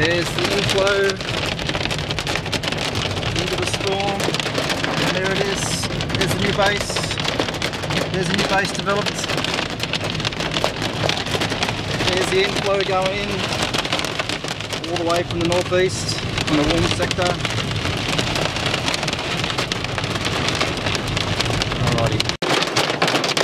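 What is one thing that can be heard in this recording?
Heavy rain drums on a car's windscreen.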